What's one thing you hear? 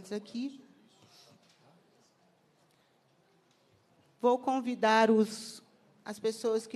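A man speaks into a microphone in a hall.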